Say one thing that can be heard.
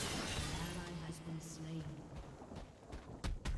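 Magic spell effects whoosh and crackle in a video game.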